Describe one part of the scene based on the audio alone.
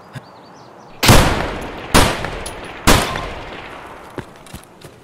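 A scoped rifle fires three loud shots that echo away.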